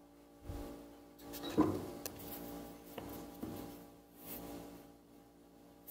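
A thin sheet of leather rustles as a hand picks it up.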